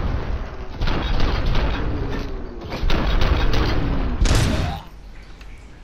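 Gunshots fire rapidly in loud bursts.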